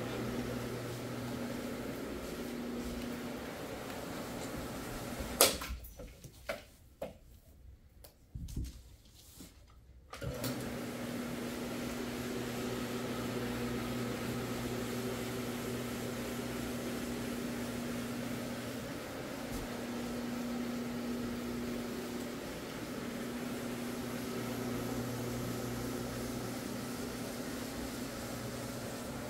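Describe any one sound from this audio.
A floor machine hums steadily as it scrubs the carpet.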